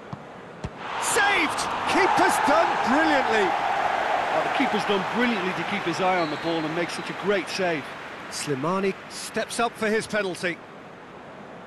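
A large stadium crowd roars and cheers loudly, then dies down.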